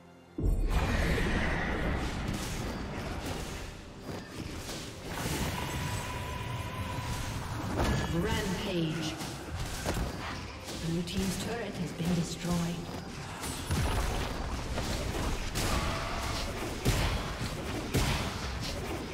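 Video game combat effects whoosh, zap and clash in quick bursts.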